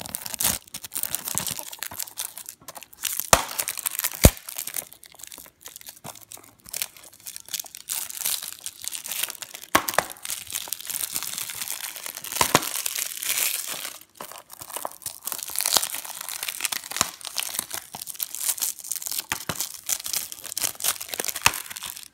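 A plastic disc case clicks and knocks against a hard surface.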